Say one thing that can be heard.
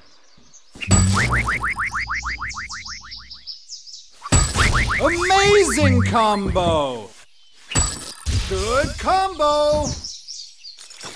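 Quick rising chimes and swooping tones ring out as combos score.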